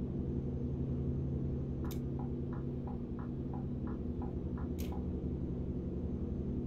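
A truck engine hums low and steady.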